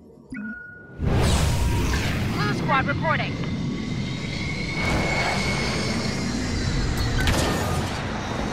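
A starfighter's engines roar steadily.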